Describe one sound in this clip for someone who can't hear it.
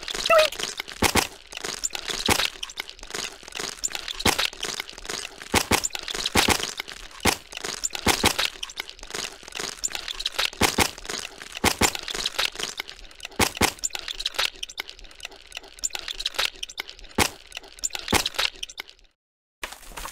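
A meat grinder crank turns with squelching, splattering sounds.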